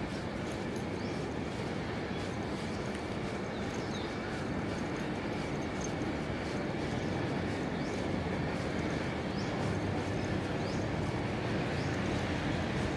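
Wind blows steadily against the microphone outdoors.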